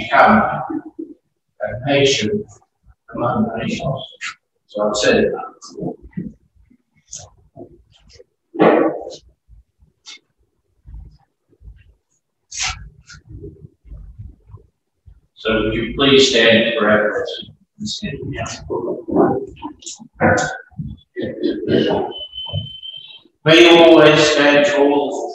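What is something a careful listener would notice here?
A man speaks calmly through a microphone, reading out in a large echoing hall.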